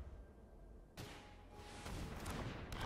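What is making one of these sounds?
A magical spell effect whooshes and shimmers.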